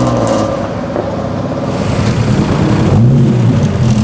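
An old car engine drones as it accelerates away.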